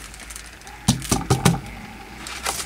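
Glitter patters onto paper.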